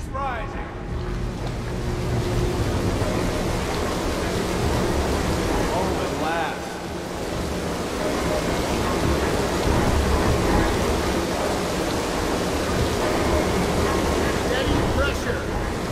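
Water gushes and roars loudly down into a channel.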